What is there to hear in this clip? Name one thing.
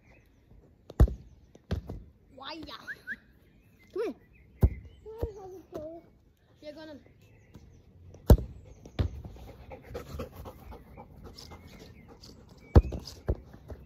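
A football thumps sharply against a foot.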